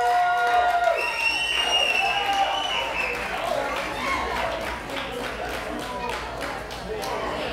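A crowd chatters loudly.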